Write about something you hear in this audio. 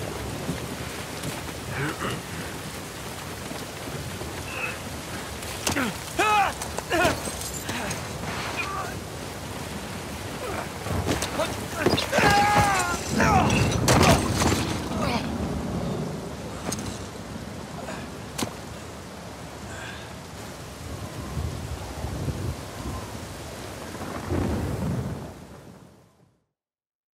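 A waterfall pours and splashes over rock.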